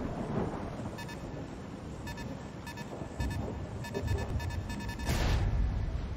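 A warning alarm beeps in rapid pulses.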